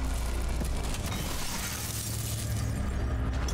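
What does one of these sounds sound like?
Glass shatters and scatters.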